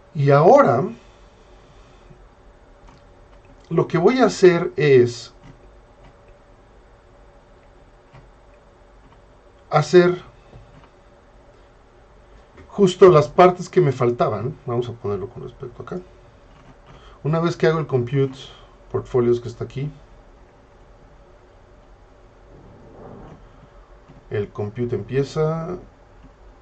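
A man speaks calmly and explains, heard close through a microphone, with pauses.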